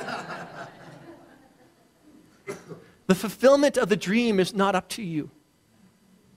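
A man speaks calmly and warmly through a microphone.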